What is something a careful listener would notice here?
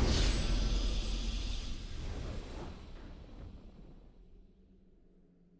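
A triumphant video game victory sound swells and then fades away.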